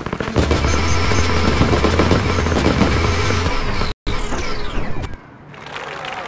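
Fast electronic dance music plays loudly.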